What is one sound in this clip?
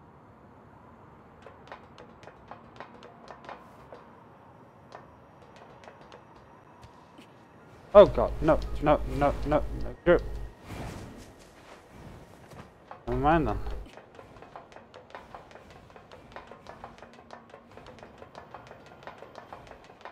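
Quick footsteps patter on hard ground and metal stairs.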